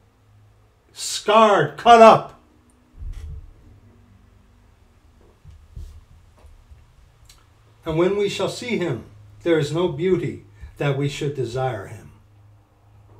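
A middle-aged man speaks calmly into a microphone, close by.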